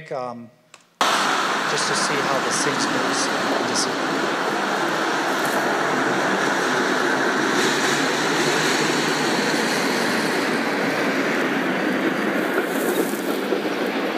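Traffic on a busy street rumbles steadily through loudspeakers.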